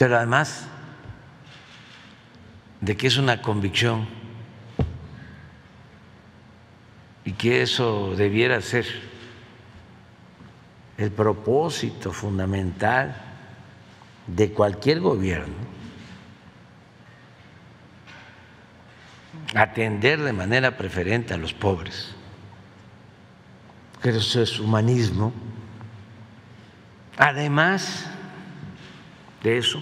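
An elderly man speaks calmly into a microphone, in short phrases with pauses between them.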